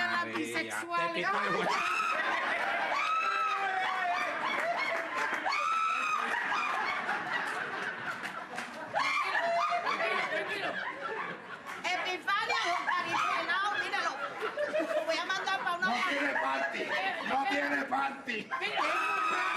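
A woman talks loudly and with animation on a stage.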